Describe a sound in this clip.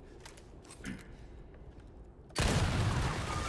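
A gunshot rings out.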